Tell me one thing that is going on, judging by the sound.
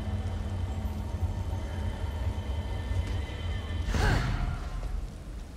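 A magical blast bursts with a loud rushing whoosh.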